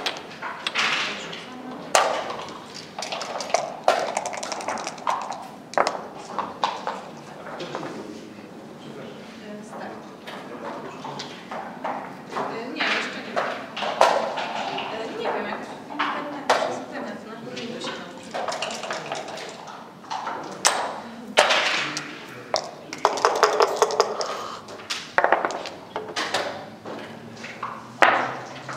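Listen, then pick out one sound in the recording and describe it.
Game pieces click as they are moved on a wooden board.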